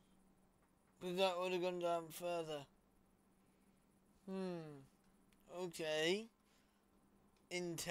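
A young man talks into a close microphone in short, lively bursts.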